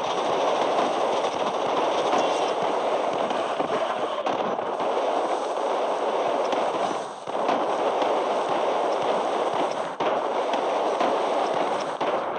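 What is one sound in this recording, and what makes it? Robot weapons fire in rapid bursts during a battle.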